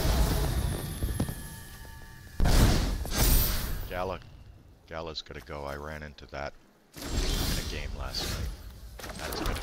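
Magical whooshes and sparkling chimes ring out as cards are played.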